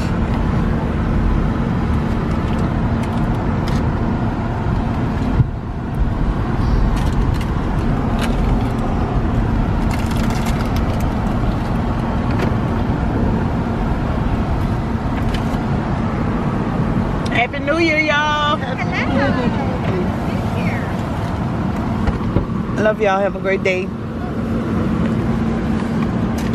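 A car engine hums steadily as tyres roll along the road.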